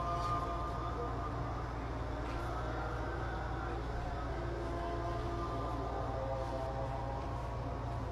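A drone buzzes overhead with a wavering hum.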